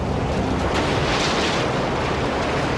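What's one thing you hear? Rocks crash and tumble down.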